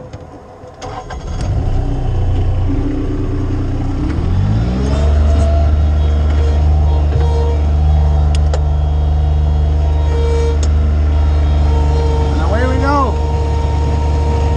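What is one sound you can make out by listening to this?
A diesel engine starts up and rumbles loudly and steadily close by.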